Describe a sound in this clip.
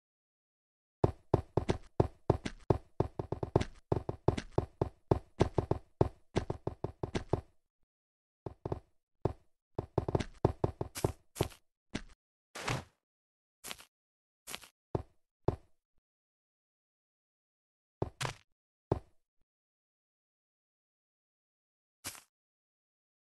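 Blocks are placed one after another with quick clicking thuds.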